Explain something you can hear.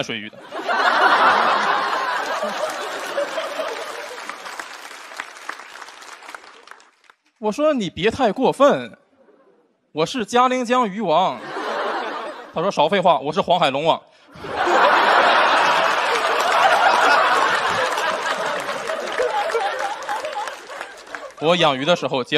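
An audience laughs and applauds loudly.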